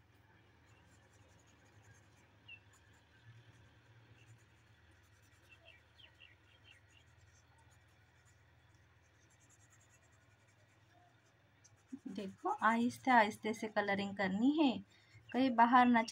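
A felt marker scratches softly on paper.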